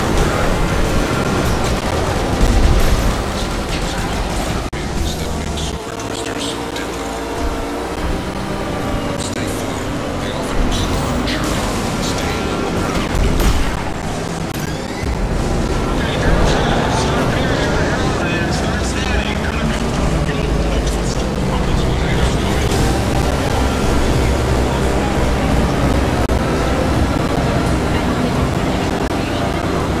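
Futuristic racing car engines roar and whine at high speed.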